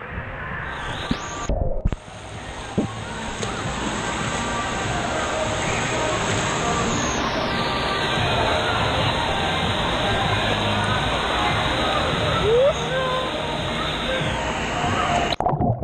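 Children and adults shout and call out in the distance.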